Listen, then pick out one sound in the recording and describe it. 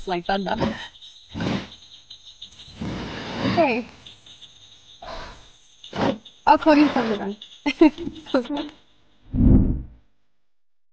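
A young woman speaks softly and warmly up close.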